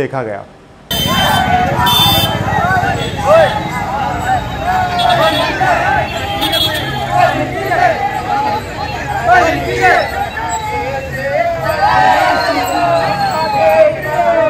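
A crowd of young men chants and shouts loudly outdoors.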